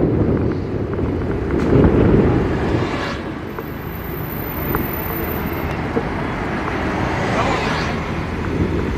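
A double-decker bus passes close by.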